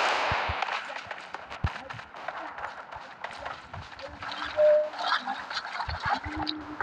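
Water splashes and sloshes as a swimmer strokes through it.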